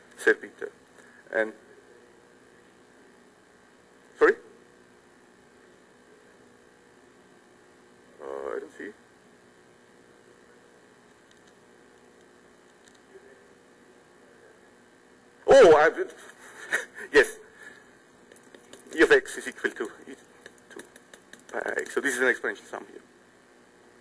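A man speaks calmly through a clip-on microphone.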